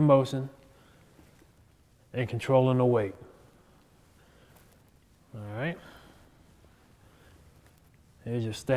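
A man speaks calmly and clearly in short phrases, close by.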